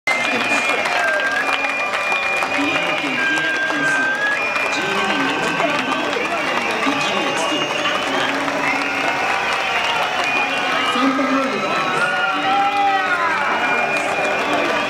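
A crowd of fans sings and chants loudly outdoors.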